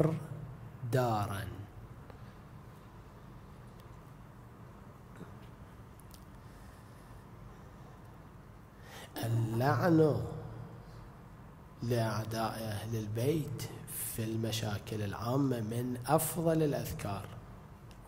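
A man speaks slowly and calmly into a microphone, with long pauses, in a room with a slight echo.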